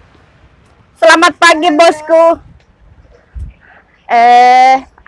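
A woman speaks briefly from close by.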